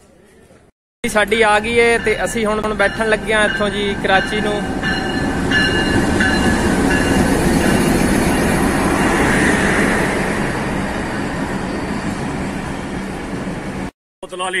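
A diesel train rumbles loudly past.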